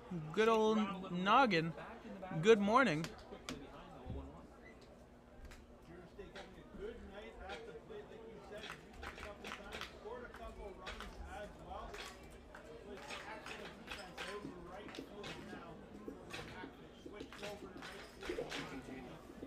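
A crowd murmurs and chatters in the stands.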